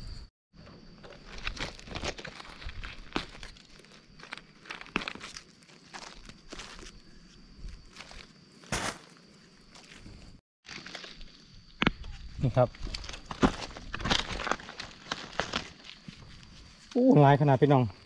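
A gloved hand rustles and scrapes through dry leaves and gravel.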